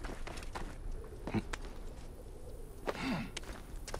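Hands grip and scrape against rock while climbing.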